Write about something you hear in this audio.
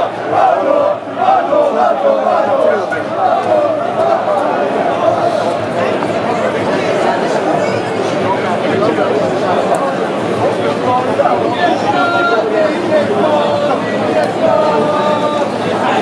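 A large stadium crowd sings and chants loudly in an echoing open space.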